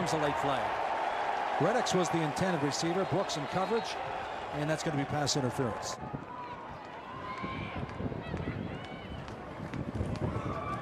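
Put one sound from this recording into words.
A large crowd murmurs and cheers in an open stadium.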